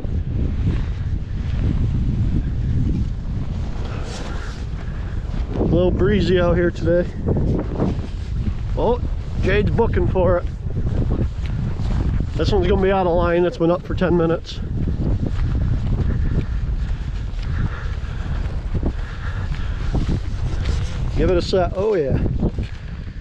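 Wind blows hard into the microphone outdoors.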